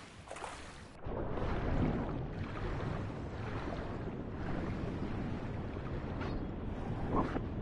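Water churns and bubbles underwater.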